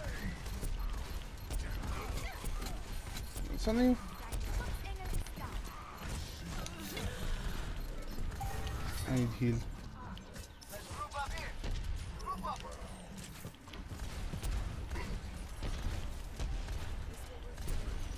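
Rapid gunfire crackles and bursts.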